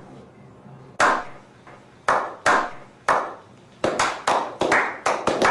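A few men clap their hands slowly.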